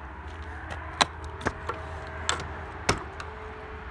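A metal door latch clanks and clicks open.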